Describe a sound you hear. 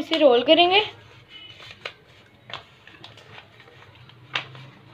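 Paper rustles and crinkles as it is folded around a wrap.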